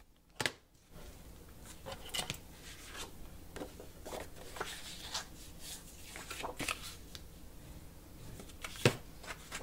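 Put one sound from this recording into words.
Sheets of cardboard slide and rustle on a tabletop.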